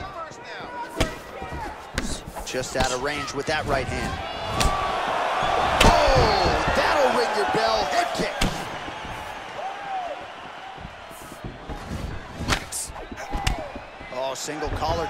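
Punches land with sharp thuds.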